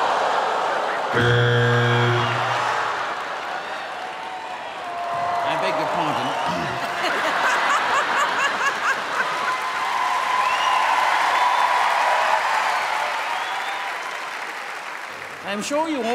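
A large audience laughs and cheers loudly.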